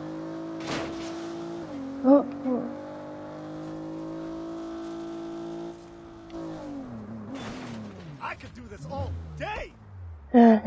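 A car engine hums steadily, then winds down as the car stops.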